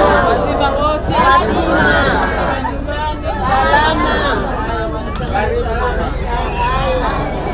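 A crowd of women and men talk at once around the listener.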